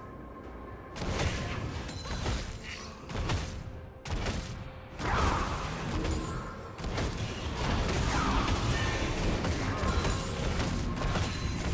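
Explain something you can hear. Video game spells whoosh and crackle during a fight.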